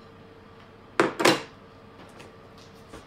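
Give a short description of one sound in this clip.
A plastic bottle knocks down onto a table.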